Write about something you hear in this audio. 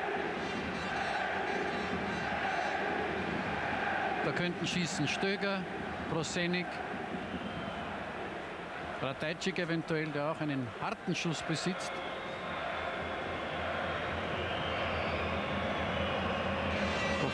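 A large stadium crowd roars and murmurs steadily in the open air.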